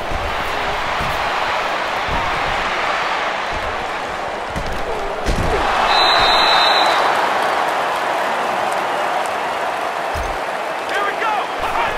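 A large stadium crowd roars steadily, swelling louder for a moment.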